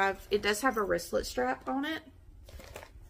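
A woman speaks with animation, close to the microphone.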